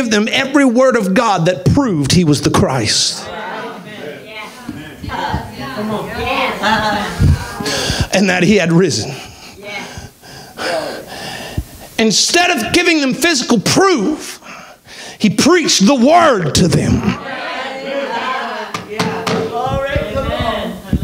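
A man preaches with animation through a microphone in a reverberant hall.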